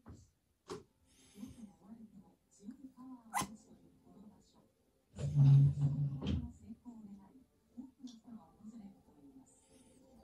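A small dog whines and grumbles softly nearby.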